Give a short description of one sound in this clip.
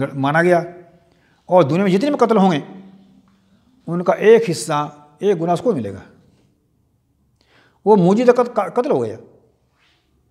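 An elderly man speaks calmly and deliberately into a nearby microphone, with pauses between phrases.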